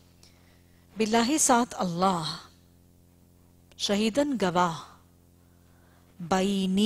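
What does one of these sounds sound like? A woman speaks slowly and calmly into a microphone, with long pauses.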